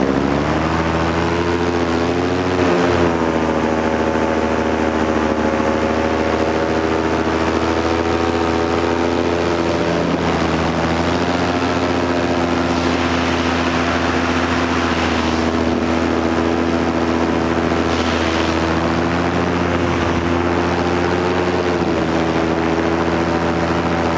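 Wind rushes past the microphone in flight.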